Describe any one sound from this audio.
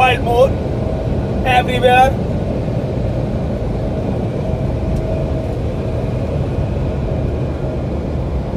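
Road noise rumbles steadily inside a moving vehicle.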